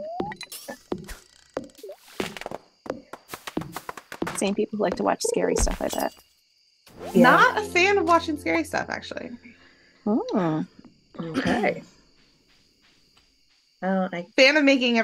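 A young woman talks and exclaims with animation close to a microphone.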